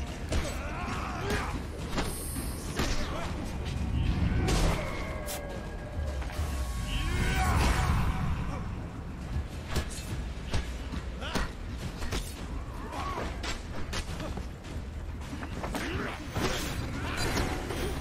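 Warriors grunt and yell as they fight.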